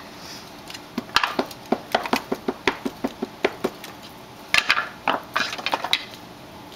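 An ink pad taps repeatedly and quickly on a rubber stamp.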